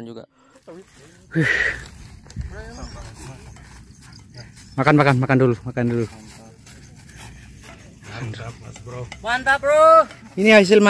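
Men and women chat nearby outdoors.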